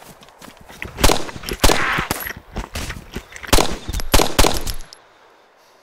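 A rifle fires a rapid burst of sharp shots.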